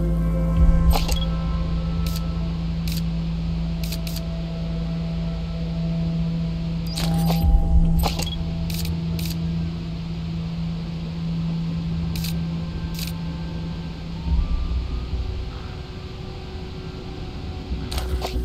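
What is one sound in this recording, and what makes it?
A rifle scope clicks sharply as it changes zoom.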